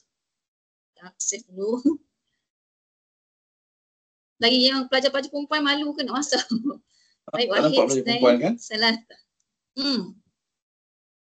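A woman speaks with animation through an online call.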